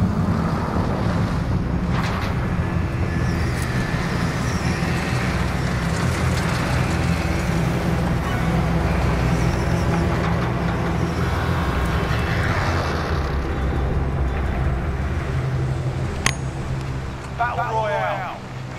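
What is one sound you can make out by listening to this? A plane's engines drone loudly and steadily.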